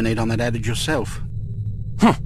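A man speaks calmly through a game's speakers.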